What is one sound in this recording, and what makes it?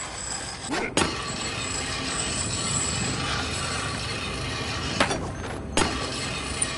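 A skateboard grinds along a metal rail with a steady scraping hiss.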